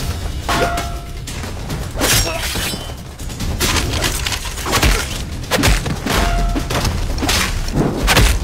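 Punches and blows land with sharp thuds.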